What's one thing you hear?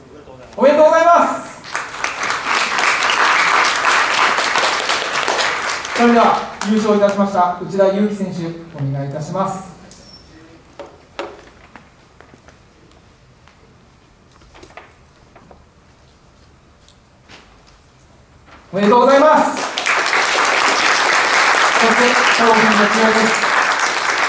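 A man announces over a loudspeaker.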